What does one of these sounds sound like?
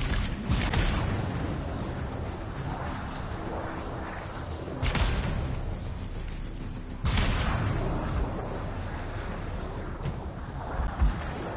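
Energy blasts burst loudly, one after another.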